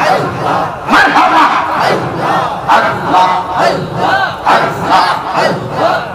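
A man preaches loudly and passionately into a microphone over a loudspeaker.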